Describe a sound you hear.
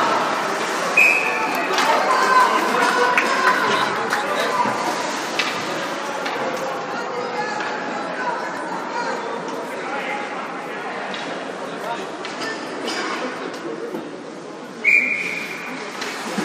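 A referee's whistle blows short and shrill, twice.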